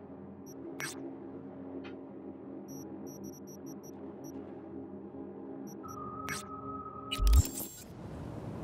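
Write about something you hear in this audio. Soft interface clicks and beeps sound.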